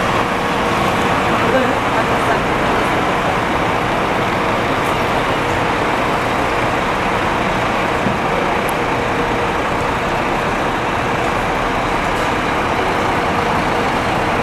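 A bus engine rumbles steadily as the bus turns and drives slowly closer.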